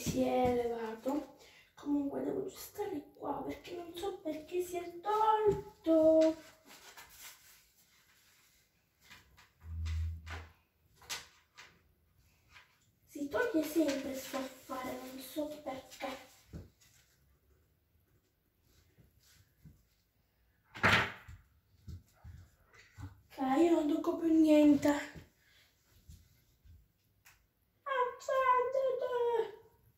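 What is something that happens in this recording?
A young girl speaks close by, with animation, in bursts.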